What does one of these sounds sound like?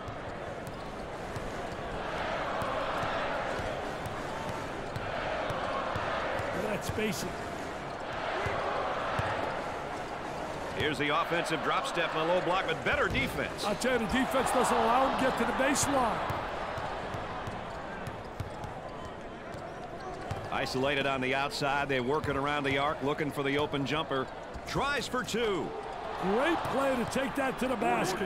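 A crowd roars and cheers in a large echoing arena.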